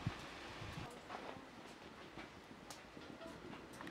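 Rice pours into a metal pot.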